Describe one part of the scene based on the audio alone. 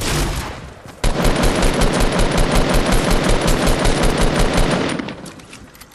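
A video game gun fires a rapid burst.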